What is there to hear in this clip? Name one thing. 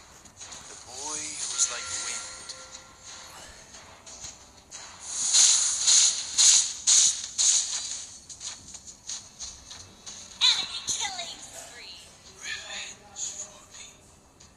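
Game attack effects whoosh, zap and clash in quick bursts.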